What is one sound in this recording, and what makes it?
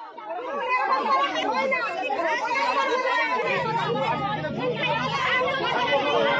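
A crowd of women shout and argue loudly and angrily close by.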